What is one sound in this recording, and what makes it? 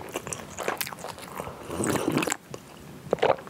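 A young woman sips a drink loudly.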